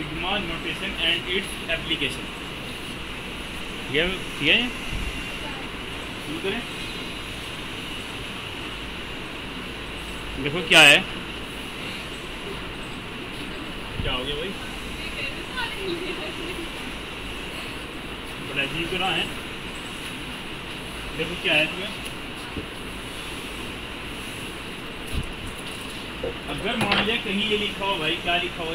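A man speaks in short bursts, close by.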